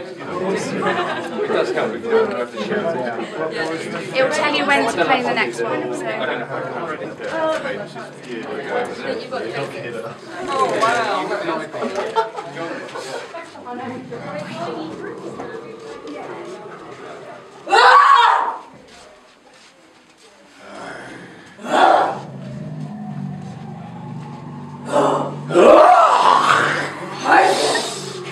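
A group of young adults talk among themselves nearby.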